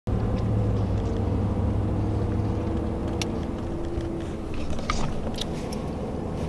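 A car engine hums steadily with road noise inside a moving car.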